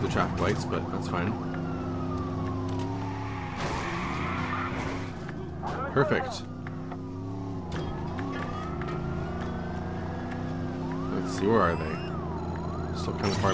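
A siren wails, rising and falling.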